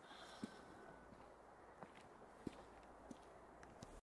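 Footsteps crunch on a gravel road.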